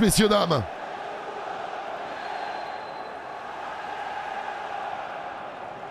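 A large stadium crowd cheers and chants steadily.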